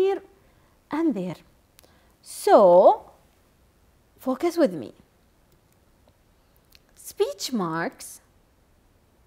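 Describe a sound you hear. A young woman speaks calmly and clearly into a microphone, in short phrases.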